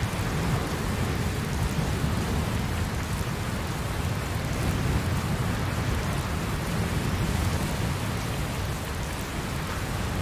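Steady rain falls and patters all around.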